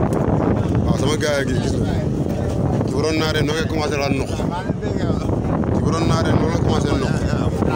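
Several men shout and call out excitedly nearby.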